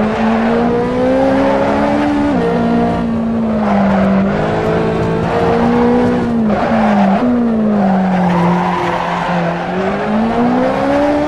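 A sports car engine roars, rising and falling in pitch as it shifts gears.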